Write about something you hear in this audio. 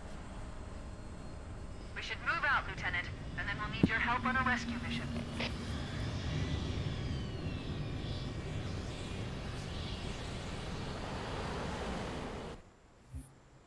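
A dropship engine roars as it flies past.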